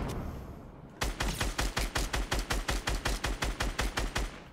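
A gun fires rapidly over and over.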